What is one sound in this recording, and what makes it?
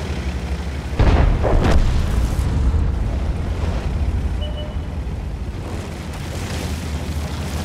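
Branches snap and crash as a tank pushes through trees.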